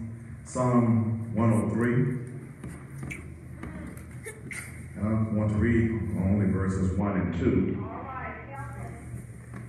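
An elderly man speaks slowly and solemnly through a microphone in a large room.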